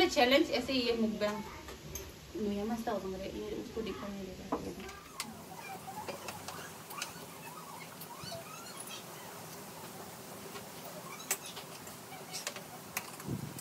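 Young girls slurp and chew noodles.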